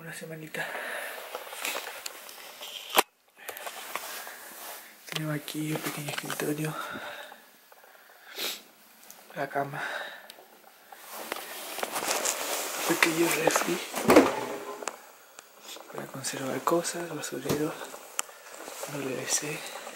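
A young man talks casually and close by.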